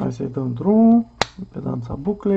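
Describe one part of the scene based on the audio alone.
A rotary dial clicks.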